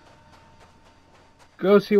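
A small spacecraft flies past with a whirring hum.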